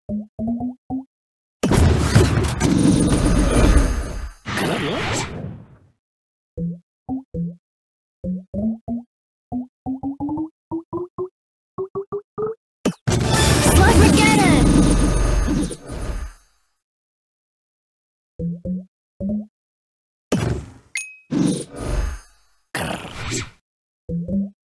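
Short chiming tones ring out one after another, climbing in pitch.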